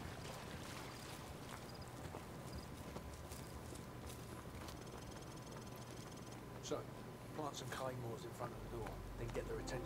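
Boots tread on soft ground at a walking pace.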